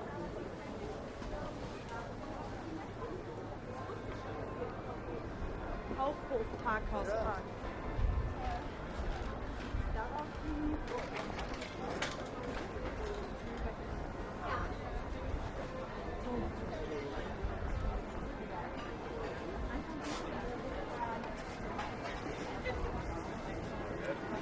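A crowd of people chatters in a busy open-air market.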